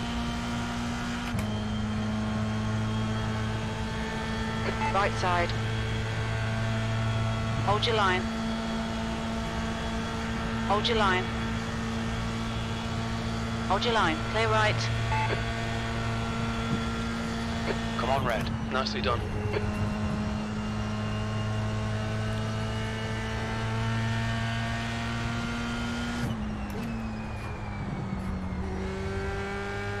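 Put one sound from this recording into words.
A racing car engine drones steadily, shifting pitch with each gear change.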